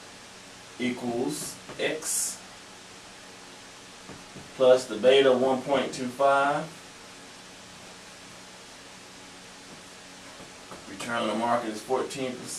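A man speaks calmly nearby, explaining.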